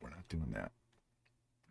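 A man speaks briefly into a close microphone.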